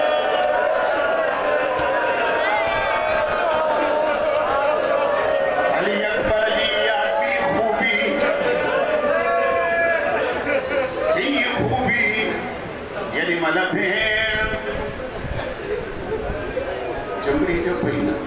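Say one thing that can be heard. A man recites a mournful chant loudly through a microphone and loudspeaker.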